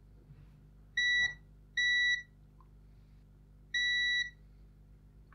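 A continuity tester gives short, steady high beeps.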